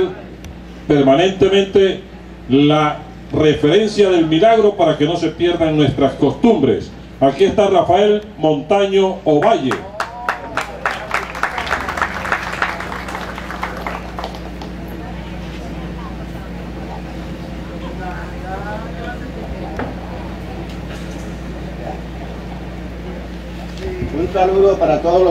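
An elderly man speaks through a microphone and loudspeakers, echoing outdoors.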